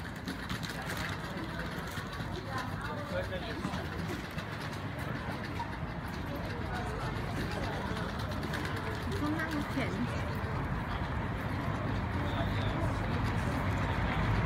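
Several adults talk casually while walking outdoors.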